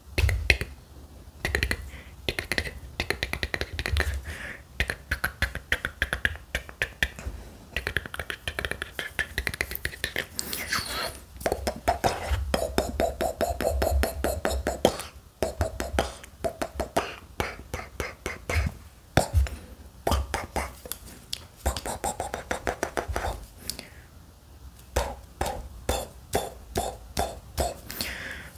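A metal folding knife clicks and clatters as it is flipped rapidly in the hands.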